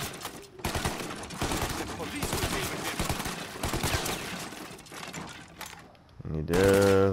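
Wooden crates splinter and crack under gunfire.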